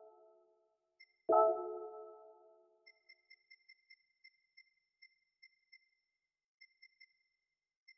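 Short soft electronic ticks sound in quick runs as a menu selection moves.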